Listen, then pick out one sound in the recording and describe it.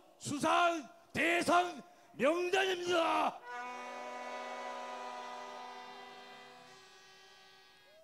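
An elderly man speaks with animation through a microphone and loudspeakers.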